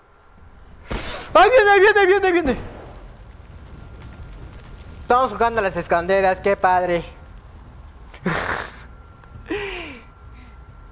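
A young woman speaks with animation into a nearby microphone.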